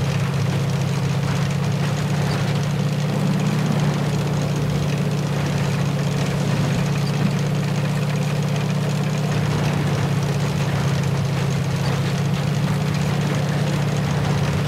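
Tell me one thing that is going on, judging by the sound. A tank engine rumbles steadily as the tank drives along.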